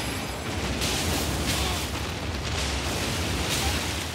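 Flames roar and crackle as a huge beast is set on fire.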